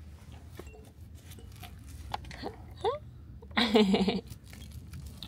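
A baby babbles and coos softly nearby.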